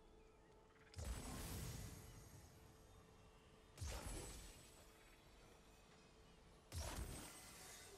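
Magical energy bursts whoosh and boom loudly, one after another.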